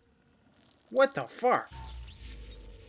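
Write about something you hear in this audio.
A sharp magical blast bursts and crackles.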